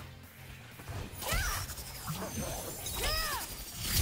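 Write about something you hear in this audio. A magical energy blast whooshes.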